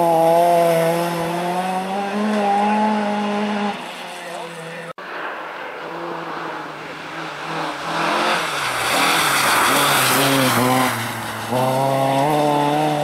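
A rally car engine roars and revs hard.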